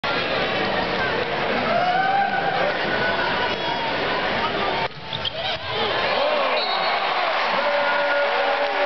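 A large crowd cheers and chatters loudly in an echoing arena.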